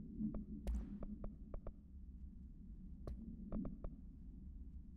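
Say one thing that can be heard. Short interface clicks tick several times.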